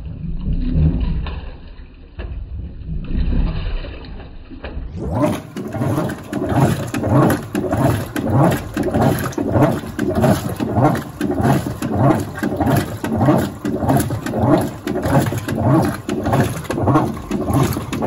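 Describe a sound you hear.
Water sloshes around laundry in a washing machine tub.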